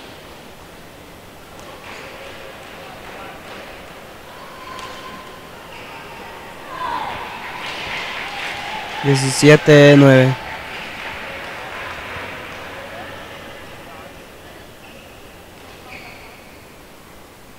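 Spectators murmur and chatter in the background.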